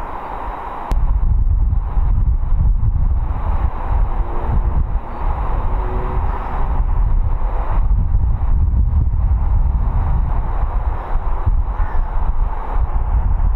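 Wind buffets the microphone outdoors with a steady low rumble.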